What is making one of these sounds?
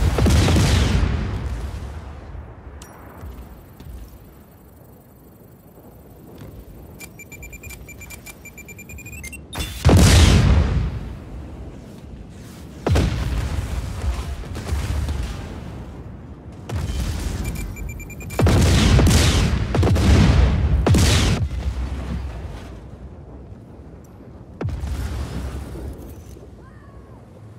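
Loud explosions boom and roar, one after another.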